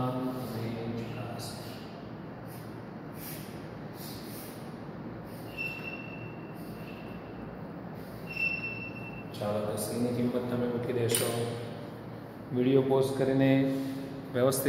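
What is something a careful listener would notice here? A man speaks calmly, like a teacher explaining.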